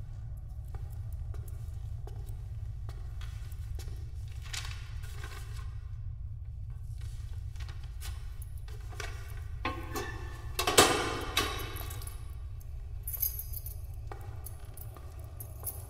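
Footsteps echo faintly down a long hallway.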